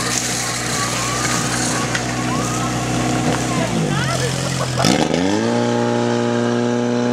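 A pump engine roars steadily and then revs higher.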